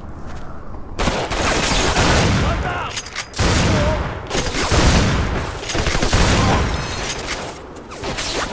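A shotgun fires loud blasts that boom and echo.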